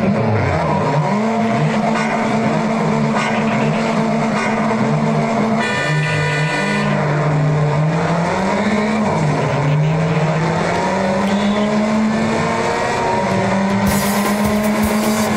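A car engine idles, then revs hard and climbs up through the gears.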